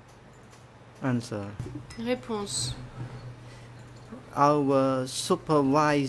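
An older woman speaks with emotion into a microphone.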